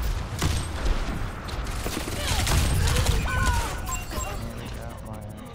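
Rapid gunfire and blasts crackle loudly.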